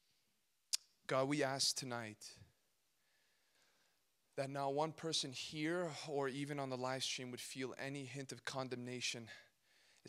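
A young man speaks calmly into a microphone, heard through loudspeakers.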